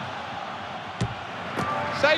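A football is struck with a sharp thud.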